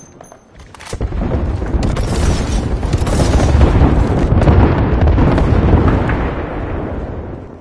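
Rapid gunfire rattles loudly and without pause.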